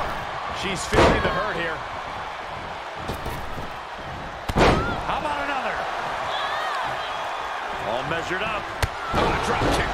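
A body slams heavily onto a wrestling mat with loud thuds.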